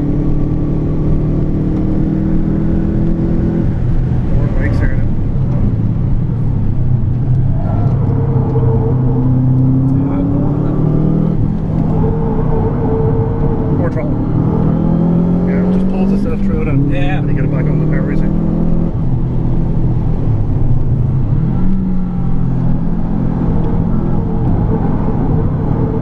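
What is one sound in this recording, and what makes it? Tyres rumble and hiss on the road.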